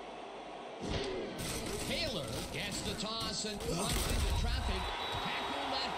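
Football players crash together in a tackle with heavy thuds.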